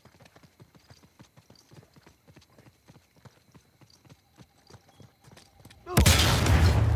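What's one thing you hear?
Quick footsteps run on stone.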